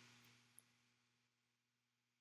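A young woman speaks softly over an online call.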